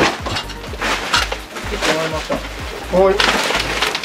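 Cardboard boxes scrape and rustle as they are shifted.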